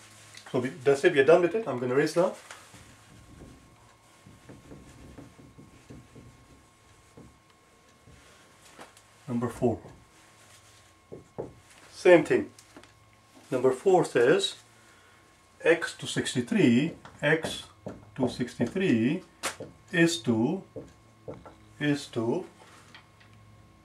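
A middle-aged man explains calmly, close by, in short bursts with pauses.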